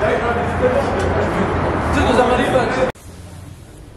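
Young men talk as they walk in a group.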